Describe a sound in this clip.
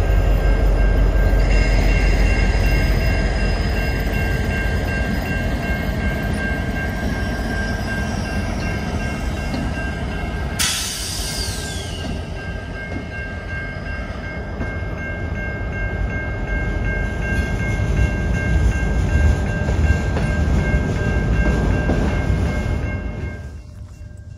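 Freight locomotive engines rumble loudly and close by as a train passes.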